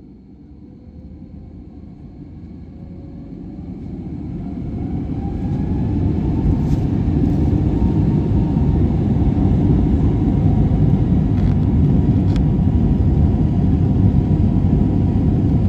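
Jet engines roar and swell louder as a plane speeds up for takeoff.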